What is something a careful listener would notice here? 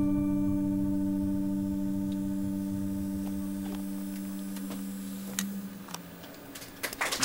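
A guitar amplifier holds a low sustained note that slowly fades.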